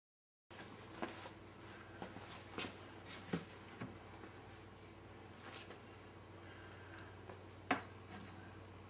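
A handheld device knocks and clicks as it is picked up and handled.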